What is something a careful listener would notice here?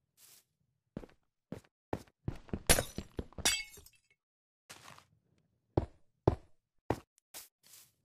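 Stone blocks knock sharply as they are placed and broken.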